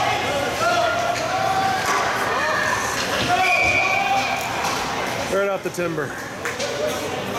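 A crowd of spectators cheers and shouts in an echoing rink.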